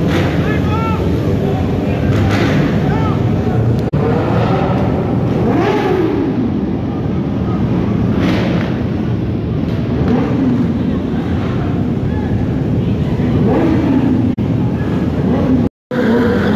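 Motorcycle engines rev loudly, rising and falling in pitch.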